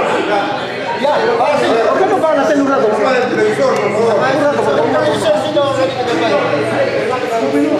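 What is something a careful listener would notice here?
A man speaks up loudly to the group.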